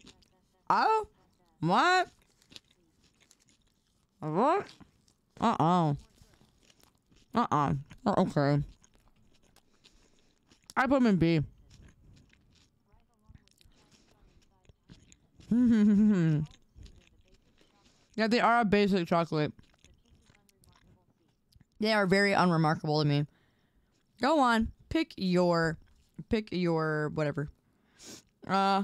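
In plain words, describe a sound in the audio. A young woman speaks with animation into a close microphone, in short bursts with pauses.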